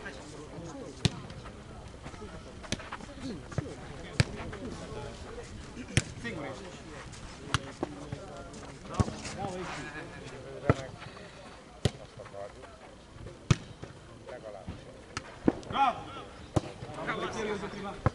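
A ball is kicked with sharp thuds, again and again.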